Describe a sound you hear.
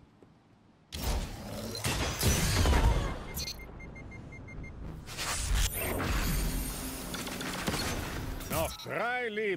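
Gunshots ring out in loud, rapid bursts.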